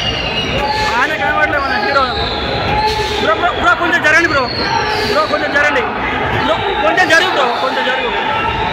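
Men cheer and call out excitedly in a crowd.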